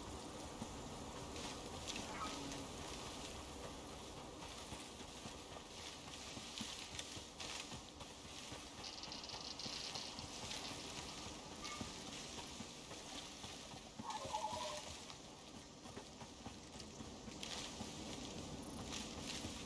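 Leafy branches swish and brush past.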